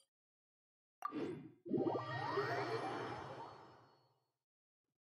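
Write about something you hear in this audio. A whooshing teleport sound swells and fades.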